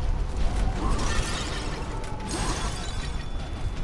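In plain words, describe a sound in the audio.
Clay pots smash and shatter.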